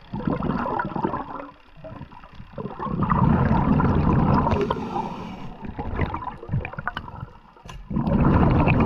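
Air bubbles gurgle and rush underwater in loud bursts.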